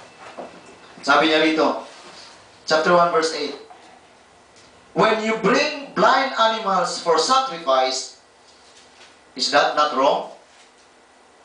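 A man speaks calmly through a microphone in a room with slight echo, pausing between phrases.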